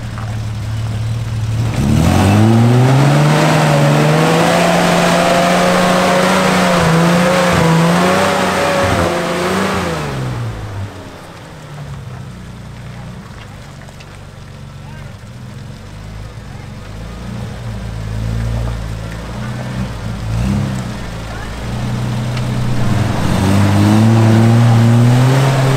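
Tyres churn and splash through thick mud.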